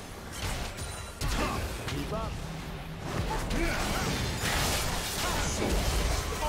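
Video game spell effects whoosh and burst during a fight.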